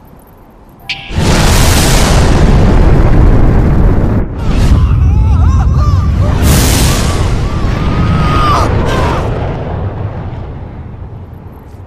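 A huge explosion roars and rumbles, then slowly fades.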